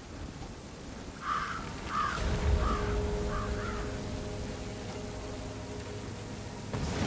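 Rain pours down steadily outdoors.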